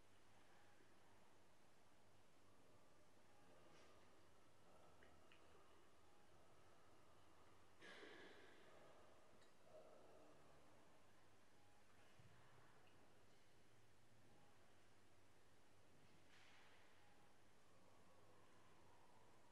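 A man speaks quietly at a distance in a large echoing hall.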